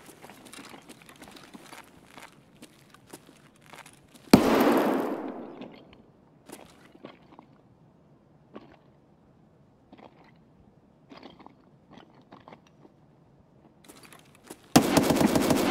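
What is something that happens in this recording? Footsteps crunch slowly on a gritty floor.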